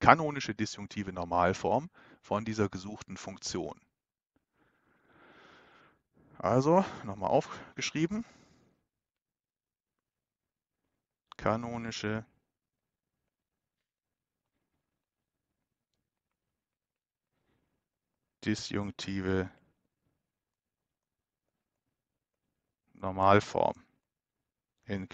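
A man speaks calmly and explains, close to a headset microphone, with pauses.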